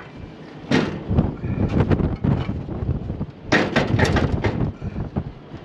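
A hand turns metal fan blades with a light rattle.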